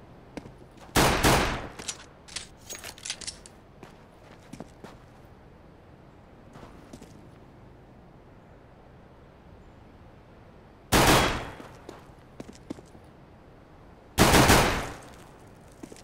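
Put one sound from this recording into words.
Pistol shots crack loudly in quick bursts.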